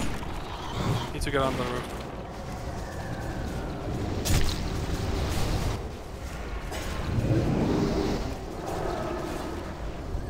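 Magic spells burst and crackle in a busy battle.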